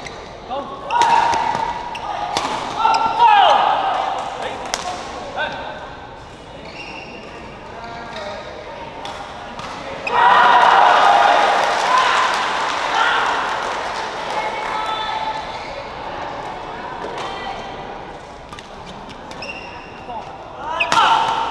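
A crowd cheers and calls out in a large echoing hall.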